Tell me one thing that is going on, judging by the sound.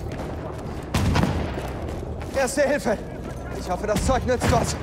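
Rapid gunshots crack and echo nearby.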